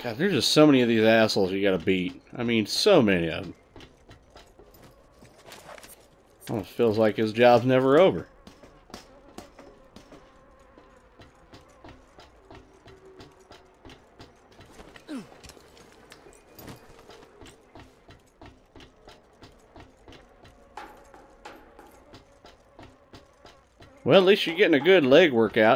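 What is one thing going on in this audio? Footsteps clang on metal walkways and stairs.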